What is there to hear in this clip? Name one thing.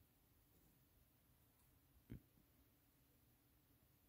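A hand scrapes and rustles through loose bedding.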